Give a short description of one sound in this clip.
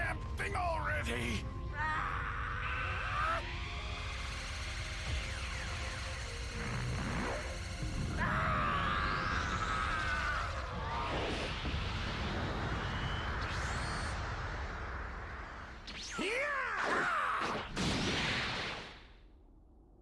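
A roaring energy blast builds and rumbles.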